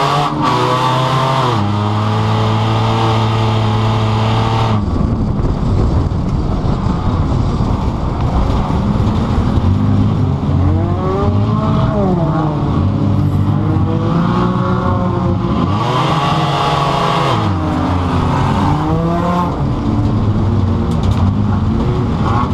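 A car engine roars loudly from inside the car, its revs rising and falling as it shifts gears.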